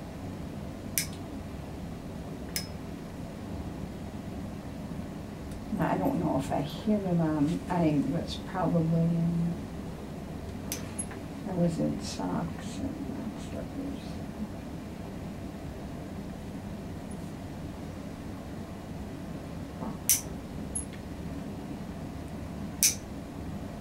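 Nail clippers snip sharply at toenails.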